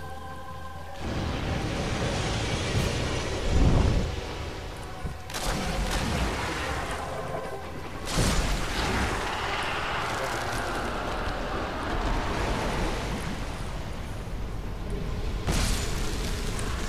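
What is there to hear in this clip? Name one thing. Blades clash and strike heavily in a fight.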